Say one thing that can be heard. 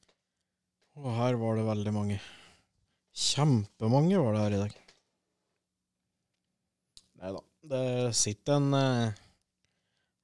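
A man speaks casually into a microphone in short bursts.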